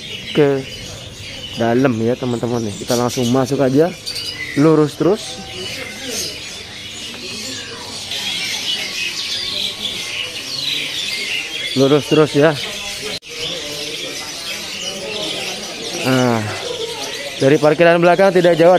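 A man speaks nearby in short bursts.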